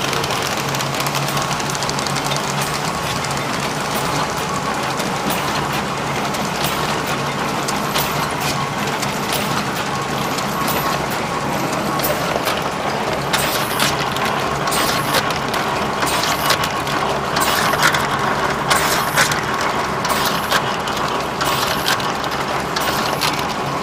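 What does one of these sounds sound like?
A machine whirs and rattles steadily up close.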